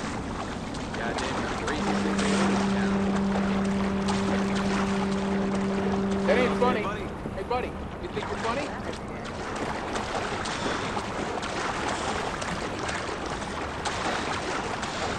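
Water splashes steadily as a swimmer strokes through it.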